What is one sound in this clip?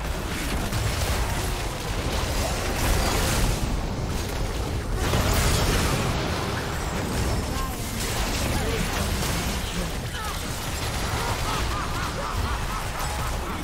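Magic blasts and weapon hits crash and crackle in a fierce fight.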